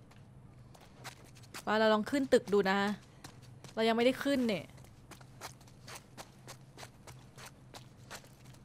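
Footsteps tap on hard ground and stairs.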